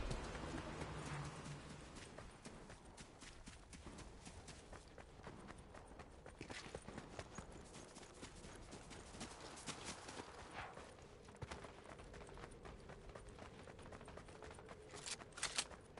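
Footsteps crunch quickly over loose stones.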